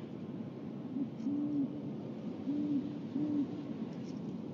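An owl hoots softly close by.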